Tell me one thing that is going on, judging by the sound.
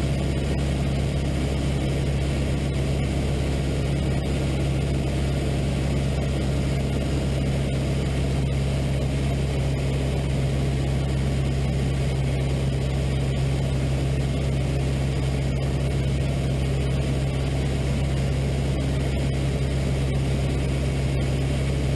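A small plane's propeller engine drones loudly and steadily.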